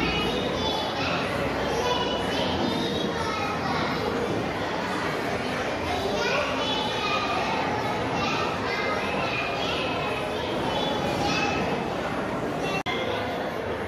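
A young boy speaks into a microphone with animation, heard through loudspeakers.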